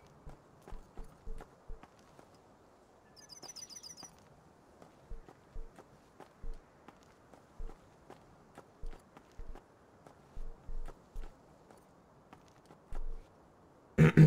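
Footsteps thud softly on the ground at a steady pace.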